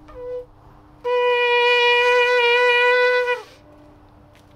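A ram's horn blows a loud, steady note outdoors.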